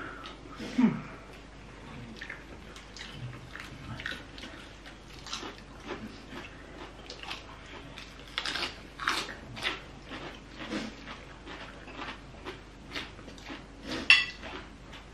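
People chew and crunch food with wet smacking sounds.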